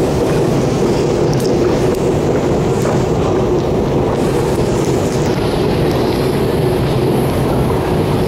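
An escalator hums and rumbles steadily in a large echoing tunnel.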